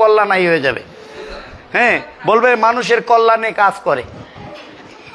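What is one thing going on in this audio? A middle-aged man sings loudly and expressively nearby in a small room.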